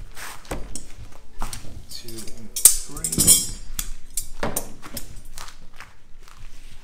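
Rolls of stiff material thump and rustle against a table.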